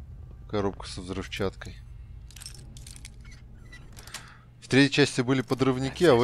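A lock pick scrapes and clicks inside a lock.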